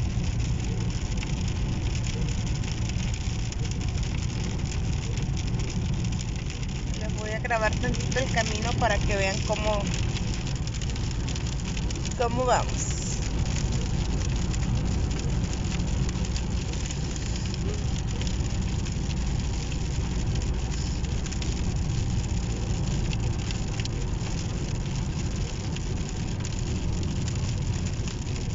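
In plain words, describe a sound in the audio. Rain patters lightly on the windscreen.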